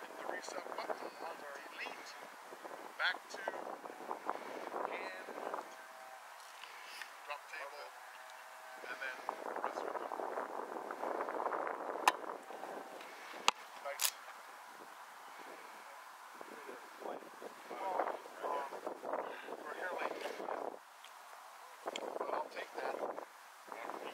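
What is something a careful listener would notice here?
A young man talks calmly close by, outdoors.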